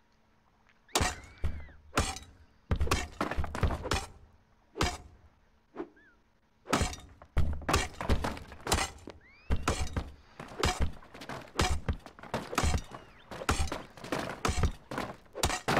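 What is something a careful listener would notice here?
A pickaxe chips rapidly at stone, with blocks cracking and crumbling.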